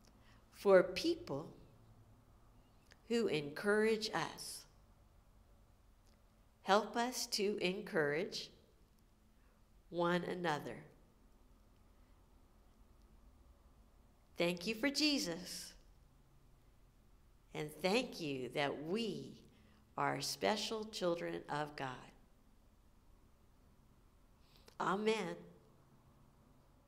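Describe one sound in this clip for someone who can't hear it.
A middle-aged woman speaks calmly and warmly close to a microphone, in short phrases with pauses.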